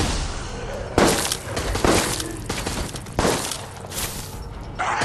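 Heavy blows thud and crack in quick bursts.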